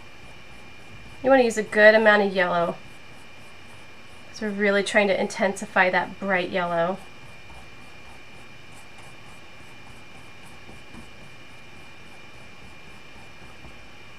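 A paintbrush strokes softly across a canvas.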